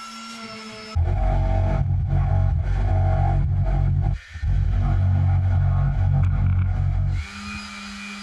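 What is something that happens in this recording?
A jigsaw buzzes loudly, cutting wood.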